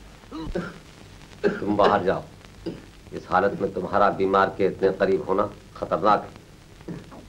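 A young woman speaks urgently and with emotion, close by.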